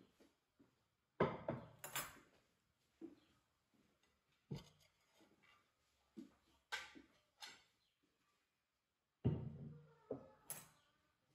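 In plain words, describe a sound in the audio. Ceramic plates clatter as they are set down on a wooden table.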